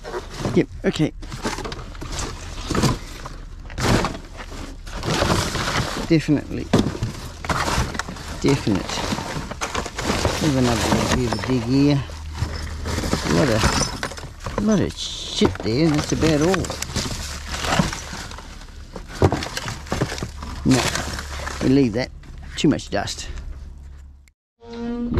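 Cardboard and plastic rubbish rustle and clatter as it is rummaged through in a bin.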